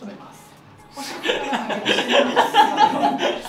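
A woman laughs brightly nearby.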